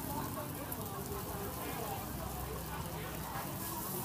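Batter pours from a ladle into a hot pan and hisses.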